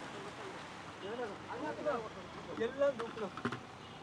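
Men talk with each other nearby outdoors.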